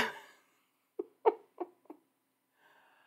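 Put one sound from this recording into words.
A woman laughs softly into a close microphone.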